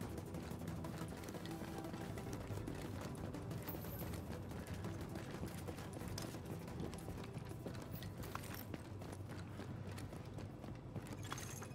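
Footsteps thud as a person runs.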